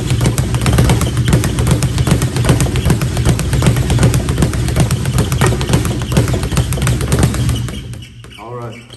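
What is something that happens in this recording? A speed bag rattles rapidly against its rebound board.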